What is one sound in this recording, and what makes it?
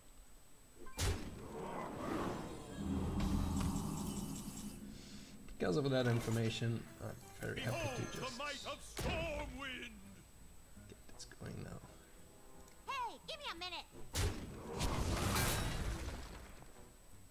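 Digital game sound effects chime, whoosh and thud.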